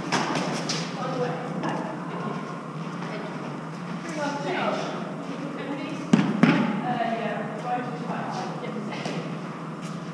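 Young women call out to each other during play.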